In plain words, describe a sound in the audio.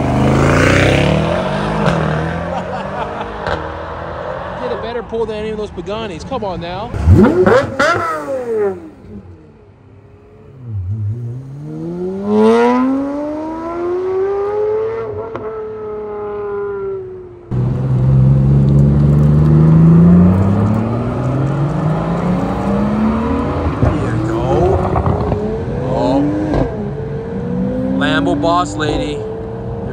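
A sports car engine revs loudly and roars away.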